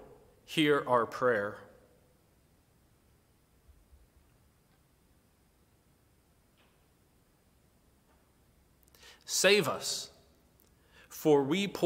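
A man speaks calmly and slowly close to a microphone, with long pauses.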